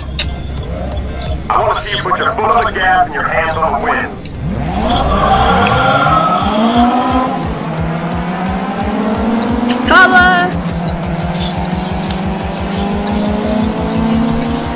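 A car engine revs and roars, rising in pitch as it speeds up.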